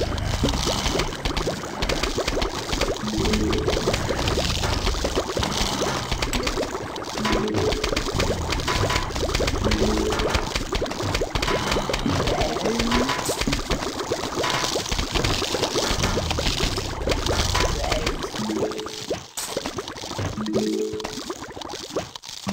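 Small cartoon cannons fire rapid soft popping shots.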